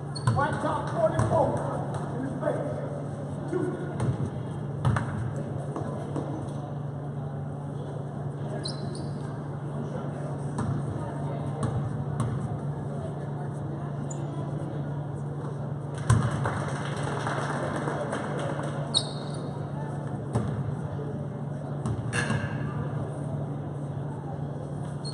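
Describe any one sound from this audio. Sneakers squeak on a gym floor in a large echoing hall.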